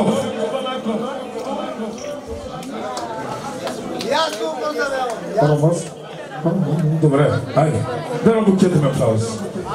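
A crowd of people chatters in a large room.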